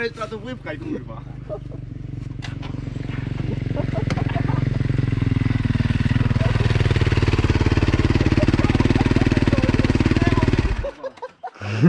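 A dirt bike engine idles and revs close by, then cuts off.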